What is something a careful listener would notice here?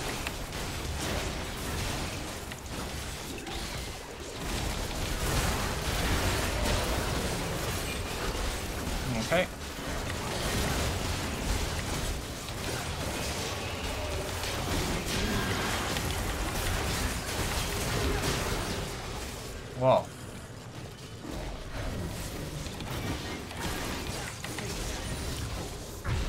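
Fantasy combat sound effects from a video game clash and burst.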